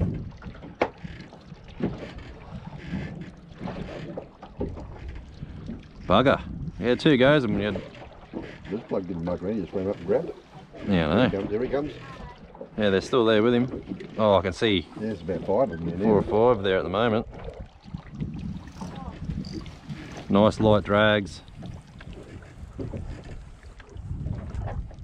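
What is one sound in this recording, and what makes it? An outboard motor idles with a low rumble.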